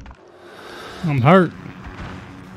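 A young man exclaims into a microphone.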